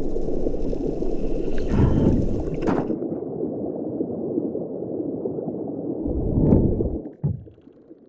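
Water rushes and bubbles in a muffled, underwater way.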